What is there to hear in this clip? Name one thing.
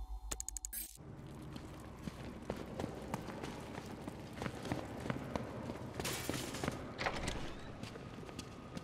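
Footsteps thud on stone pavement.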